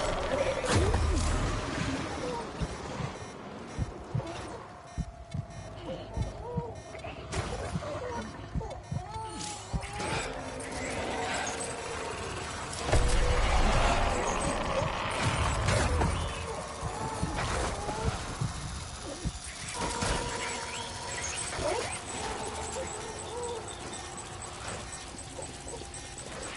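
Footsteps splash on wet ground.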